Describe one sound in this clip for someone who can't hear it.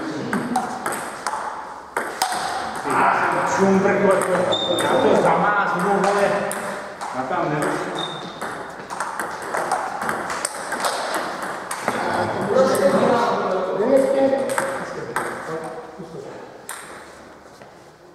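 Table tennis balls click sharply off paddles and tables in a quick back-and-forth rhythm.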